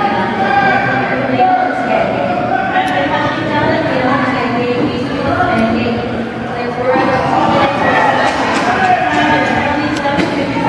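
A crowd of spectators talks and cheers in a large echoing hall.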